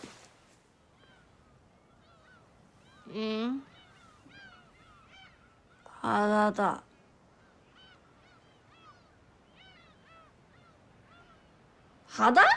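Seagulls cry outdoors.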